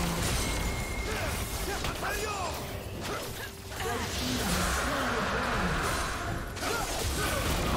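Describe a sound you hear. Magic spells whoosh and swoop in rising and falling tones.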